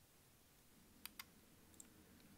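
A screwdriver clicks lightly against a small metal part.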